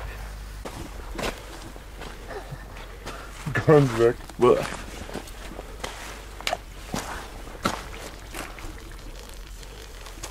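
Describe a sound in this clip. Footsteps crunch on loose dirt and gravel.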